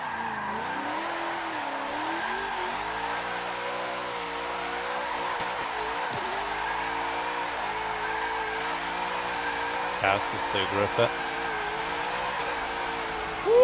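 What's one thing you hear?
Tyres squeal as a car slides sideways.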